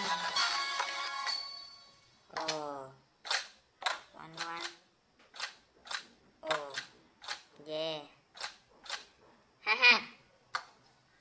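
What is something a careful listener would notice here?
Short electronic blips and chimes play from a tablet game as tiles are tapped and flipped.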